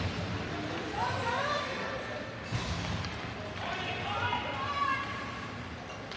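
Spectators cheer and call out from the stands.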